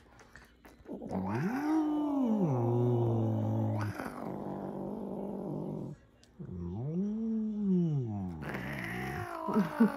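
A cat meows loudly and drawn out.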